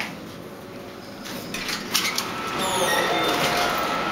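Elevator doors slide open.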